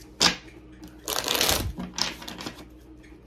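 Playing cards riffle and flutter as they are shuffled.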